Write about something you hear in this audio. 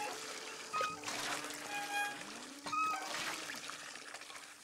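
Water gushes from a pump and splashes into a metal bucket.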